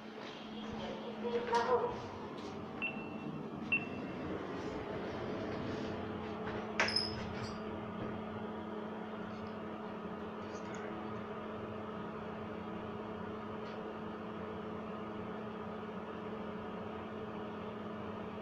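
An elevator hums steadily as it rises.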